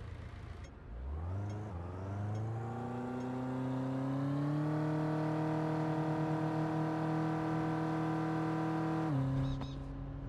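A motor scooter engine revs up and holds a steady high drone.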